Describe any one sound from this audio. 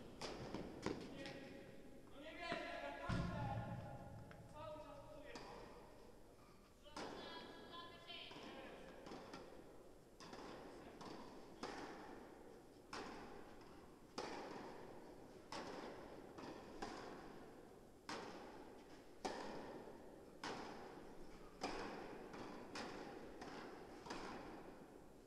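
Tennis balls are struck back and forth with sharp pops that echo through a large indoor hall.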